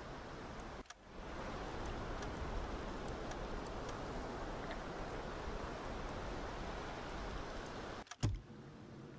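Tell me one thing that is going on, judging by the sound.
Sea water laps gently around a small boat.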